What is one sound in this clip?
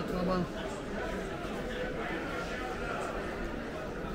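A crowd of people chatters in the background of an echoing indoor space.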